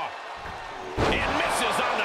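A wrestler's body slams hard onto the ring mat.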